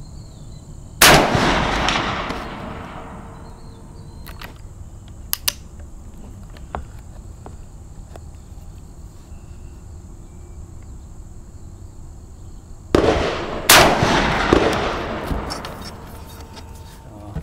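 A rifle fires loud shots that echo across open ground.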